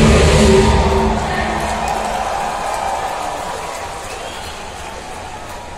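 Loud live music plays over speakers in a huge echoing arena and slowly fades.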